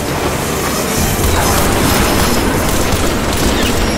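An explosion booms and roars.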